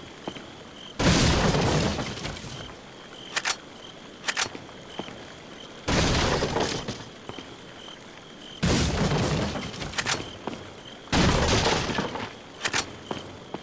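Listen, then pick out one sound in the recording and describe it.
Wooden barrels smash and break apart.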